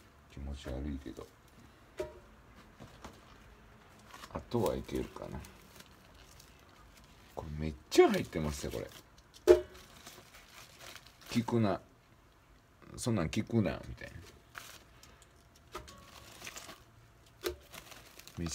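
Pieces of food drop into a pot.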